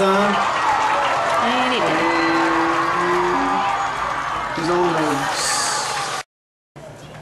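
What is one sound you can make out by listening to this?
A crowd cheers in the stands outdoors.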